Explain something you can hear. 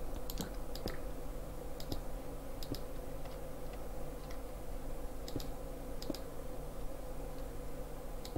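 Blocks knock and crack as they are broken.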